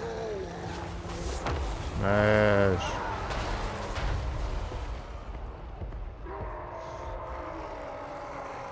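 Weapons clash and armies rumble in a noisy battle.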